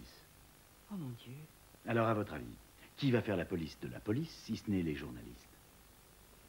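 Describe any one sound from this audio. A man speaks calmly and earnestly nearby.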